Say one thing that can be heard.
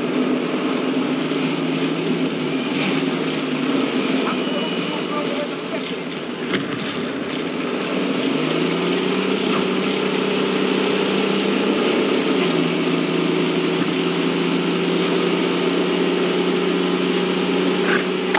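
A tank engine rumbles and whines steadily as the tank drives.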